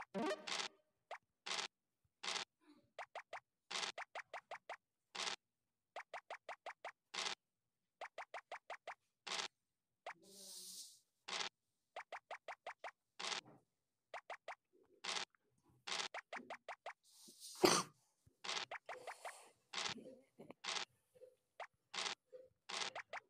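Game pieces tick along in quick runs of short clicks.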